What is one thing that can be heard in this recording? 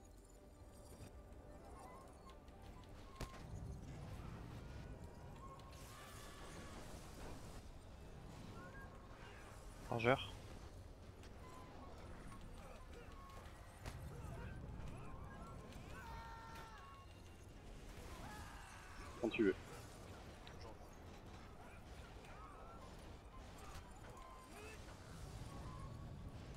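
Spell effects whoosh and crackle during a game battle.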